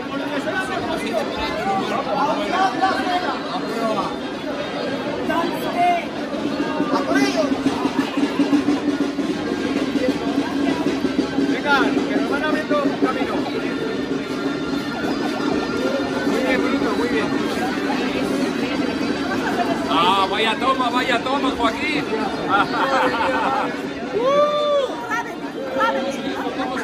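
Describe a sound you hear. A crowd chatters and cheers outdoors in a busy street.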